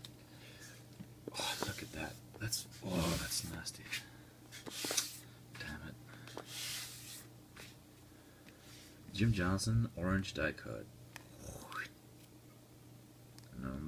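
Plastic card sleeves rustle and crinkle as they are handled.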